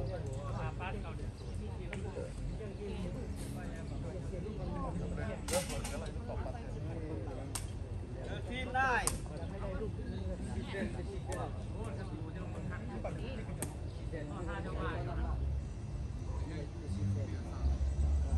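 Men talk and call out to each other outdoors.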